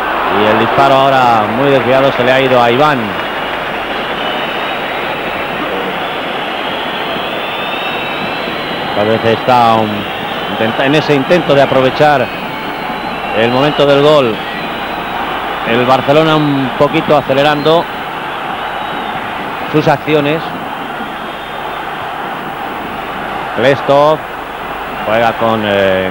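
A large stadium crowd murmurs steadily in the distance.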